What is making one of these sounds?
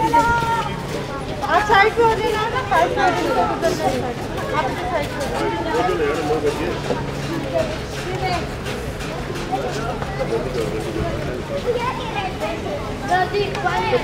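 Many children chatter and call out nearby, outdoors.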